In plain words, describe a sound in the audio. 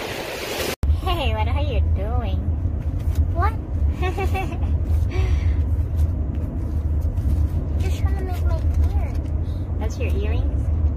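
A young girl speaks softly close by.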